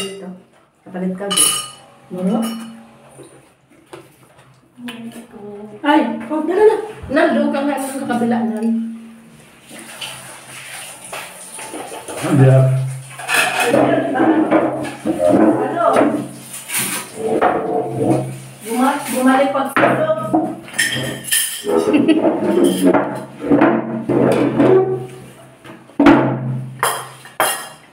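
A middle-aged woman talks casually nearby.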